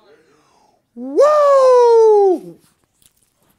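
An elderly man lets out a long, loud shout that trails off.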